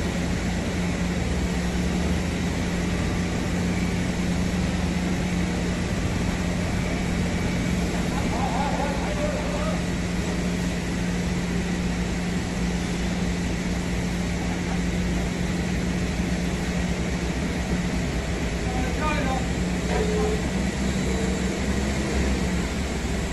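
A forklift engine idles with a steady low hum.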